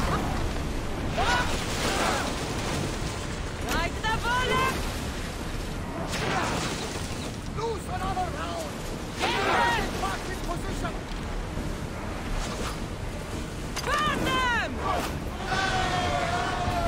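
Waves crash against a ship.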